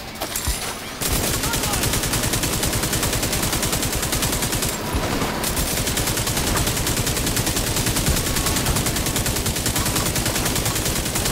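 An automatic rifle fires in rapid bursts close by.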